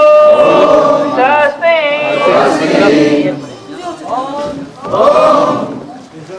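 A large crowd of men and women sings together outdoors.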